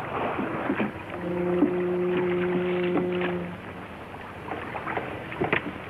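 Oars splash in water as a boat is rowed.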